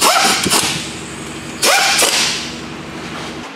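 A metal wrench clanks and rattles against an engine bolt.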